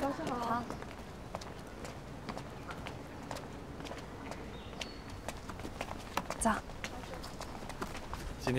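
Footsteps tap on pavement outdoors.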